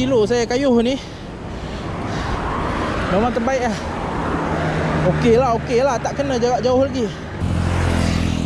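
Bicycle tyres hiss on a wet road.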